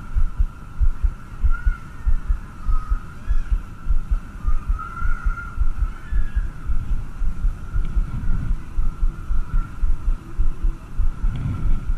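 Wind buffets the microphone in low, rapid gusts outdoors.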